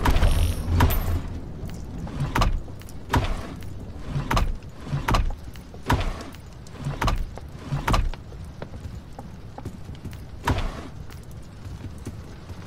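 Wooden drawers slide open and shut with dull knocks.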